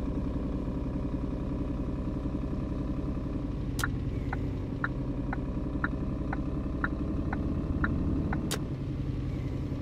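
A diesel truck engine hums as the truck cruises slowly.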